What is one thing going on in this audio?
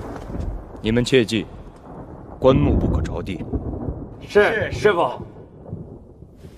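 A man speaks sternly and firmly, close by.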